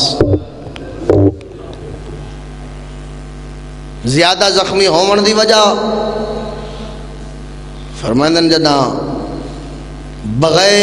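A man speaks passionately into a microphone over loudspeakers, in long drawn-out phrases, in a reverberant space.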